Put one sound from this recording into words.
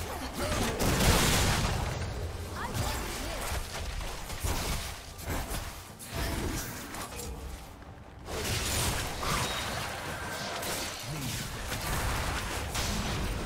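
Game spells burst and crackle during a fight.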